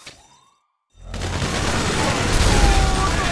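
Guns fire in rapid bursts close by.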